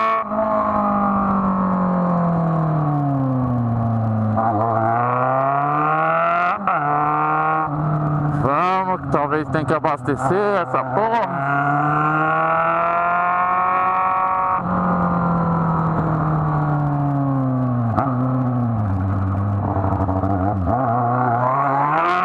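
A motorcycle engine hums close by, revving up and dropping in pitch again and again.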